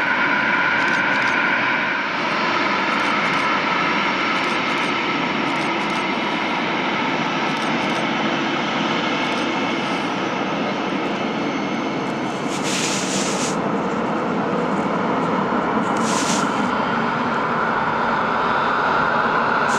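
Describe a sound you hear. A twin-engine jet airliner taxis past with its engines whining at low power.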